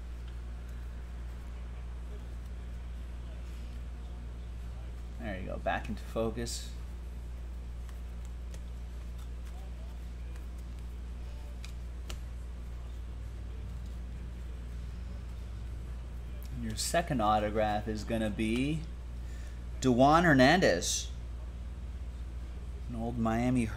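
Trading cards shuffle and rustle in hands.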